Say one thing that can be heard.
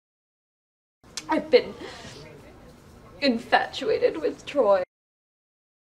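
A young woman speaks in a tearful, upset voice close by.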